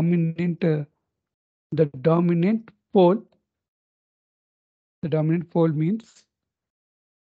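A man lectures calmly into a close microphone, in short bursts with pauses.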